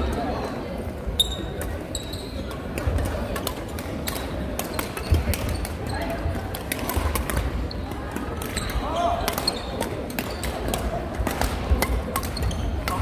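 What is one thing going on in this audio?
Badminton rackets strike a shuttlecock with sharp pops.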